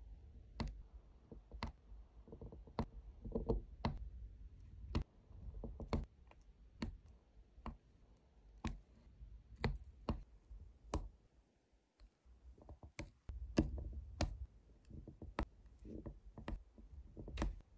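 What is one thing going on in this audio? Small plastic gems click softly as a pen tool taps them into place.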